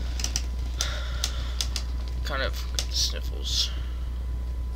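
A lockpick scrapes and clicks inside a metal lock.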